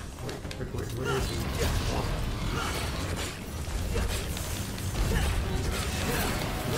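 A giant creature growls and snarls loudly.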